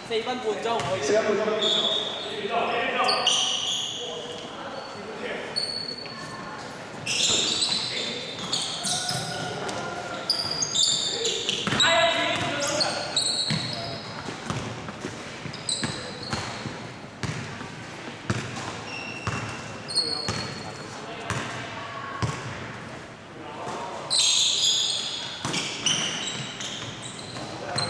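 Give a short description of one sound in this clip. A basketball bounces on a wooden floor, echoing in a large hall.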